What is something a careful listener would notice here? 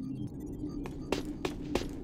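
Footsteps run across a metal walkway.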